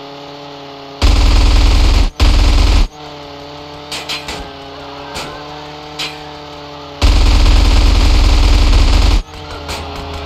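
Loud bursts of machine gun fire rattle.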